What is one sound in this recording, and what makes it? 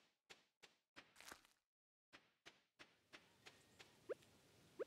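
Soft footsteps tap in a quick, even rhythm.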